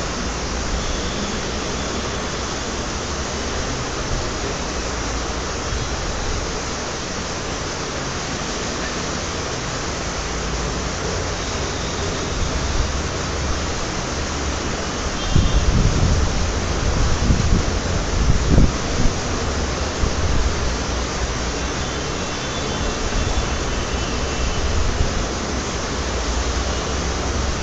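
A marker squeaks across a whiteboard.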